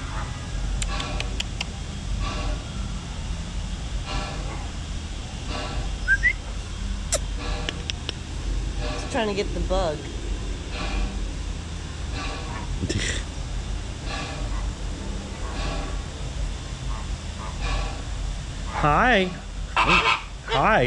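Flamingos honk and gabble repeatedly nearby.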